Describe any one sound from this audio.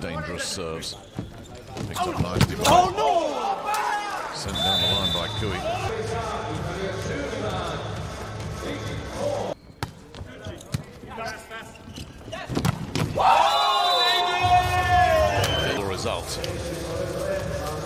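A volleyball is spiked with a sharp smack.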